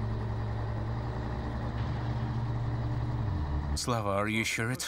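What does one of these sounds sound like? An outboard motor hums steadily at idle.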